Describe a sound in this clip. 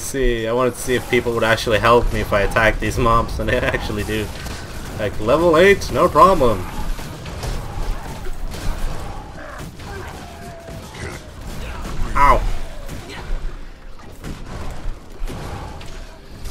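Weapons clash and magic blasts burst in a video game battle.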